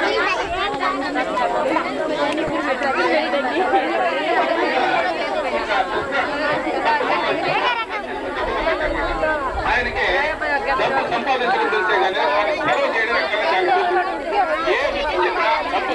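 A crowd of women sing together in chorus.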